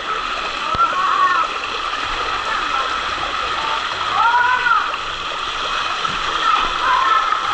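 Water rushes steadily down a slide.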